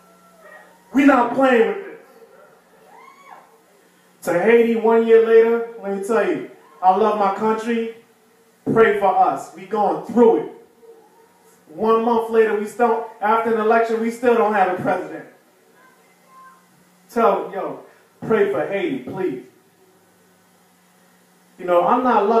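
A man speaks into a microphone, calmly and with pauses, through a loudspeaker.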